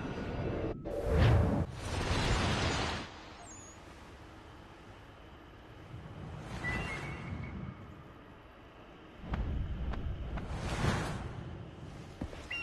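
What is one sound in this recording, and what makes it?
Lightning crackles and booms in loud bursts.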